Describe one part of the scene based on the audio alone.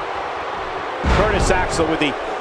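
A body slams onto a wrestling ring mat with a thud.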